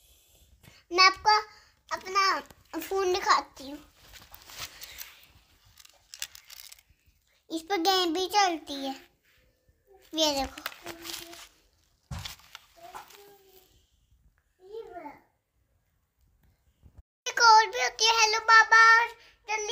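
A small girl talks in a high voice close by.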